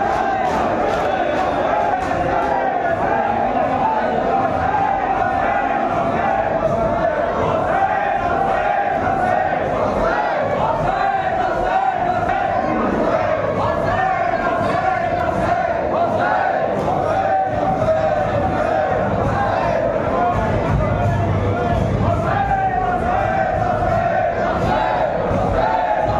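Many men beat their chests in a steady rhythm.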